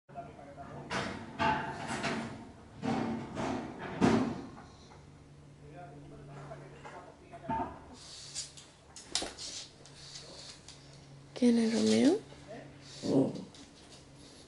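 A small dog barks and yelps close by.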